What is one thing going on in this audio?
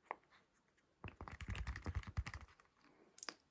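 A silicone toy rustles and crinkles as hands bend and handle it.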